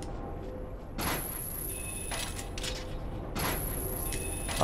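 A grappling hook shoots out with a sharp metallic whoosh.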